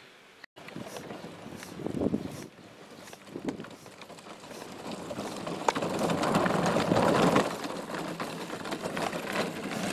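A child's ride-on toy tractor whirs as it rolls over grass.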